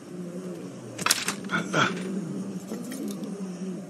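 Metal ladder rungs clank as a man climbs.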